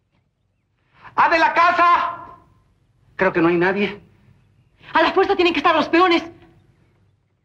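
A man shouts loudly, calling out.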